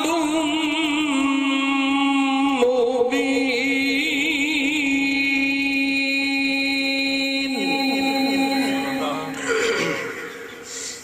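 A man chants in a long, sustained melodic call through a microphone and loudspeakers, with a wavering voice.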